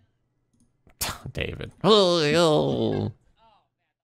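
A young man laughs loudly and wildly into a microphone.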